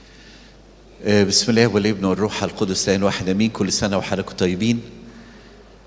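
A man chants loudly through a microphone in a large echoing hall.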